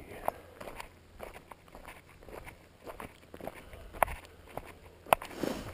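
Footsteps crunch steadily on a gravel road.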